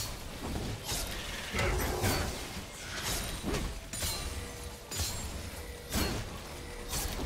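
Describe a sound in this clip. Game spell effects crackle and burst in rapid bursts.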